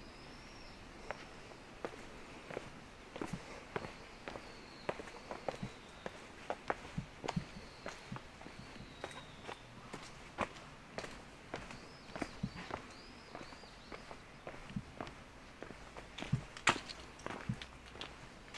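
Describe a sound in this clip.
Footsteps scuff and tap on stone steps.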